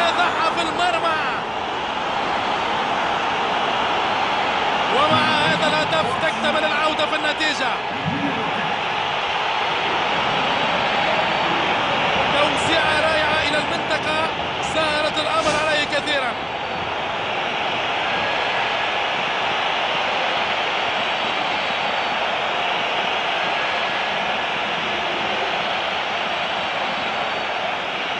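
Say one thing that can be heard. A large crowd cheers and roars steadily in an echoing stadium.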